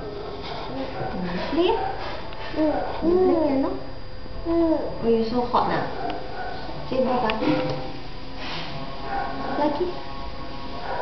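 A young woman sings playfully close by.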